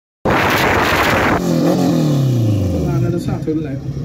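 A car engine revs loudly, then its pitch drops away.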